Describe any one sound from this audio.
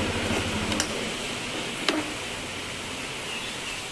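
A key clicks as the ignition is turned off.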